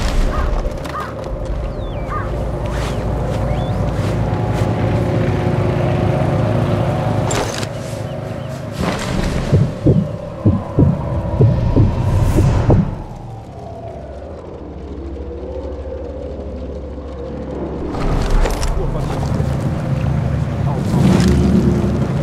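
Footsteps shuffle softly on stone and grass.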